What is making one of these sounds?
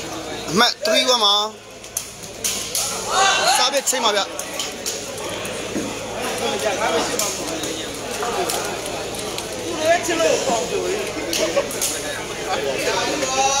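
A crowd of spectators chatters and shouts.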